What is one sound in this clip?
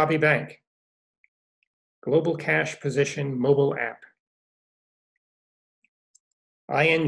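An older man speaks calmly through a microphone on an online call.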